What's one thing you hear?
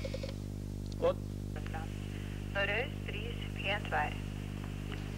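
A man speaks calmly into a telephone close by.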